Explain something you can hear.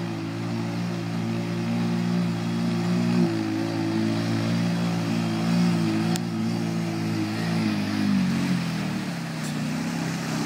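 Water splashes and sprays under a quad bike's wheels.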